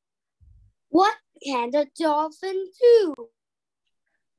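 A young girl speaks slowly and clearly over an online call.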